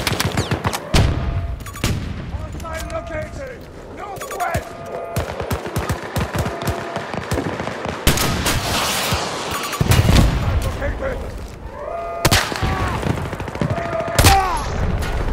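Gunshots crack sharply, one at a time.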